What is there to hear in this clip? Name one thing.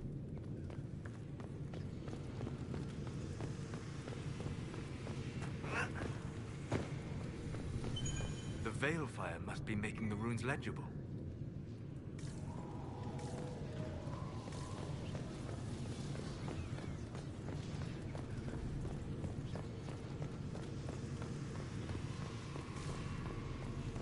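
Footsteps run over stone floors.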